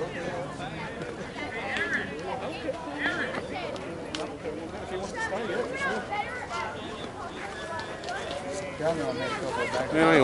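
A crowd of men and boys chatter and call out outdoors.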